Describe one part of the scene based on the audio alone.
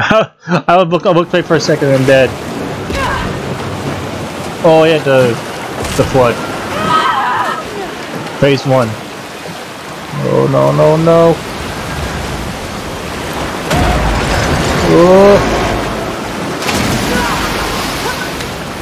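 Floodwater rushes and roars.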